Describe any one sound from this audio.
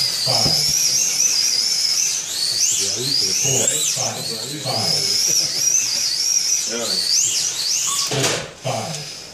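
Small electric slot cars whine as they race around a track, their pitch rising and falling.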